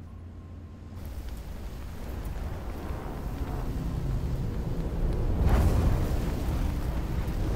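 A fire roars with crackling embers.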